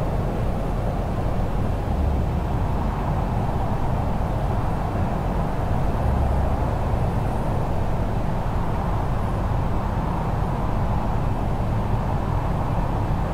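Jet engines roar steadily with a loud low rumble of air around the cockpit.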